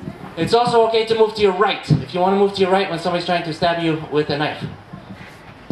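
A man speaks calmly through a loudspeaker outdoors.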